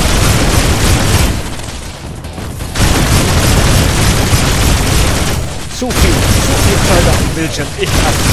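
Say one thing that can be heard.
A heavy energy gun fires in rapid, roaring bursts.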